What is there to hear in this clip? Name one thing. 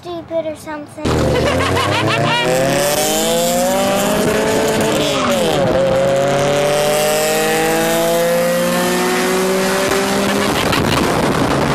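A compact car with a large exhaust revs hard as it drives alongside.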